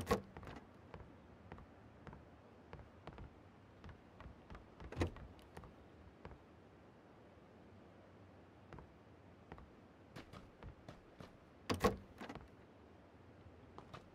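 Footsteps tap on a wooden floor.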